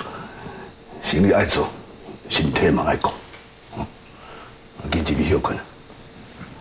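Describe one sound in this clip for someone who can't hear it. An elderly man speaks calmly up close.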